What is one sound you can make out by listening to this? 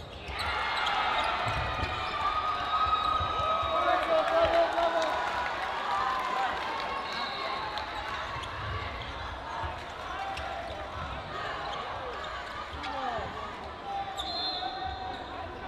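A crowd of players chatter and call out across a large echoing hall.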